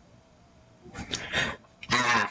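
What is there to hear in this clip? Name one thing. A monster lets out a loud, harsh screech.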